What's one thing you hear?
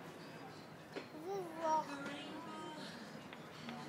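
A little girl talks nearby in a high, sing-song voice.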